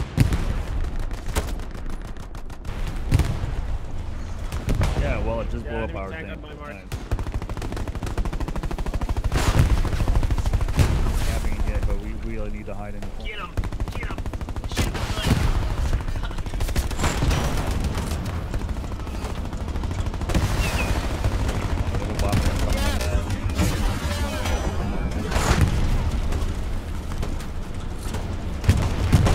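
Gunshots crack repeatedly nearby and in the distance.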